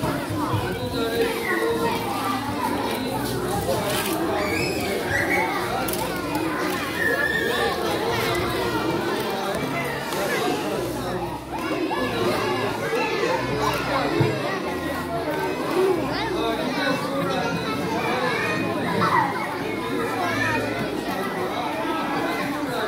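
A crowd of children murmurs and chatters.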